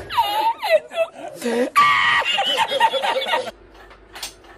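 A man laughs loudly and heartily.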